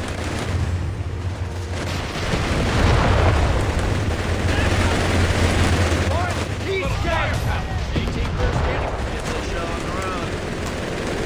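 An engine rumbles low and steady.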